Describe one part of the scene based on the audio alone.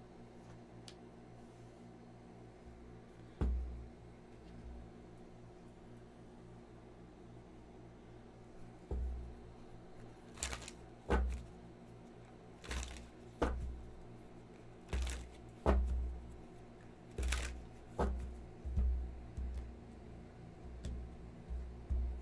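Cards are shuffled by hand, riffling and tapping together.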